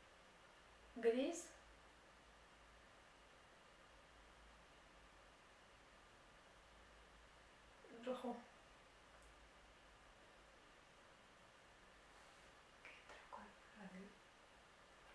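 Young women speak softly in short, occasional remarks.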